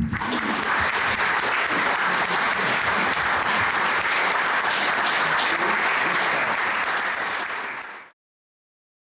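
An audience applauds steadily in a large hall, then the applause cuts off.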